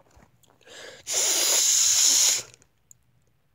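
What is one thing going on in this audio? A young man blows a loud rush of breath into the microphone.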